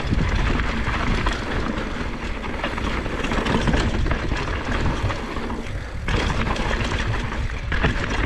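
A bicycle's chain and frame clatter over bumps.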